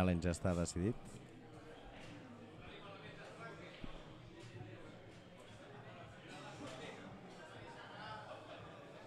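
A crowd of spectators murmurs quietly.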